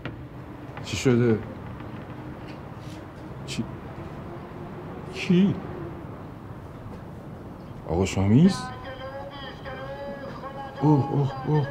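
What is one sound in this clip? A middle-aged man speaks on a phone nearby in short, calm bursts.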